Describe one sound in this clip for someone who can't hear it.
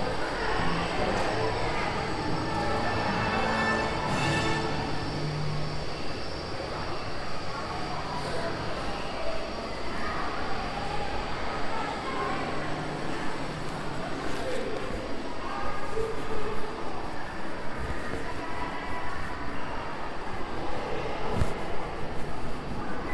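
Footsteps echo in a long corridor.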